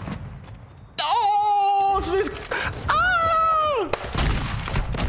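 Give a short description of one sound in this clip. A young man yells in a loud, high, drawn-out shout.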